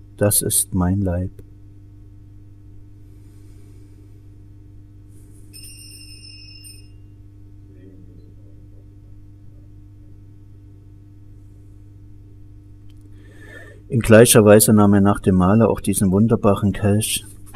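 An elderly man chants a prayer aloud.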